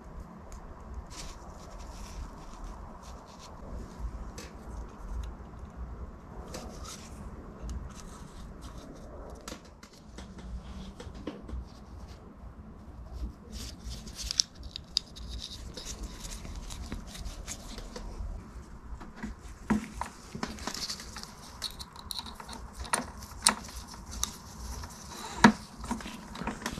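Small metal parts click and tap.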